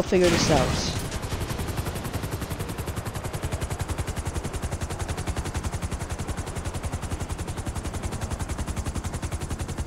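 Helicopter rotor blades thump rapidly and steadily.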